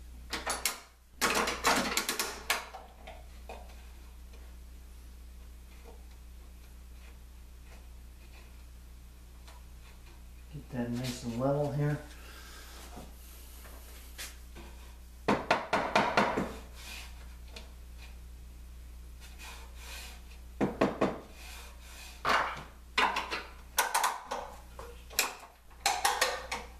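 Wooden pieces knock and clatter.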